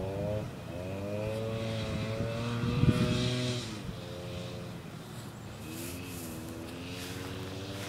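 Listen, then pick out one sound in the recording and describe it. A dirt bike engine revs nearby, rising and falling in pitch.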